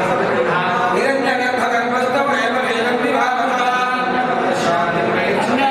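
Several men chant a prayer together in steady, droning voices close by.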